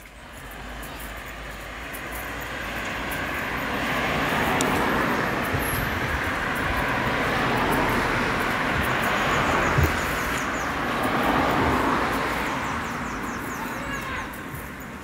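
Cars drive past on a nearby road, swelling and fading.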